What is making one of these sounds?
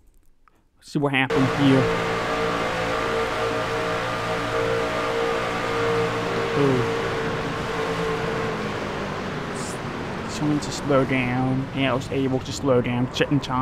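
Racing truck engines roar loudly at high speed.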